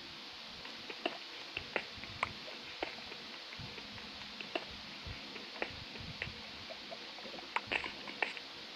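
A pickaxe taps repeatedly against stone.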